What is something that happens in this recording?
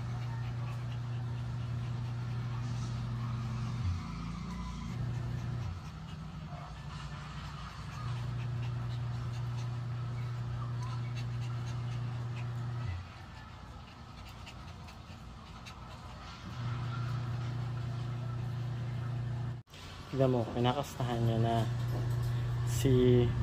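Small dogs scuffle and their claws patter on a tiled floor.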